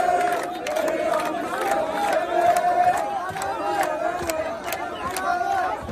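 People in a crowd clap their hands in rhythm.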